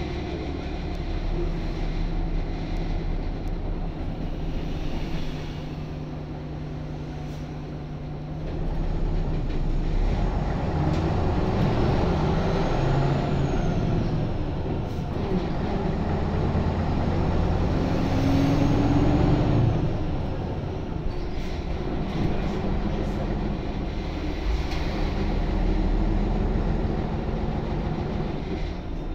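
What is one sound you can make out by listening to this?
A bus engine hums and rumbles steadily, growing louder at times.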